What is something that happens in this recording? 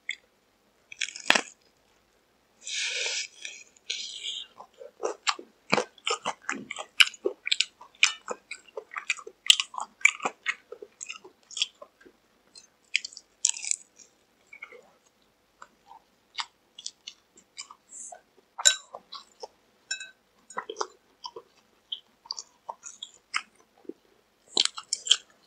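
A young man chews and smacks his lips close to a microphone.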